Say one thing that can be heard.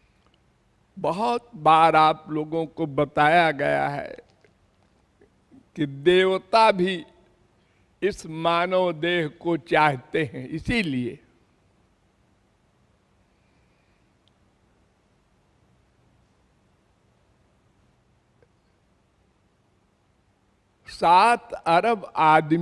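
An elderly man sings into a microphone in slow, drawn-out phrases.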